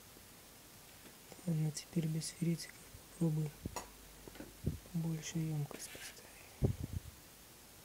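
A small metal part knocks against a hard surface.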